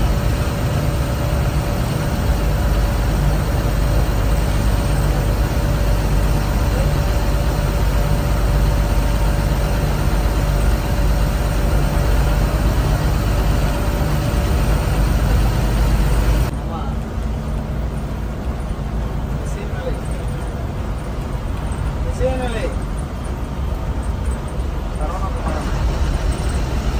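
A vehicle engine rumbles steadily from inside a moving vehicle.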